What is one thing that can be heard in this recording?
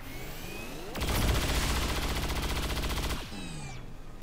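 A rifle fires a rapid, loud burst.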